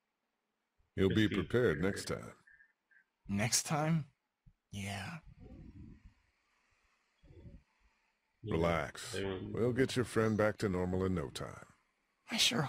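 A man speaks calmly and reassuringly.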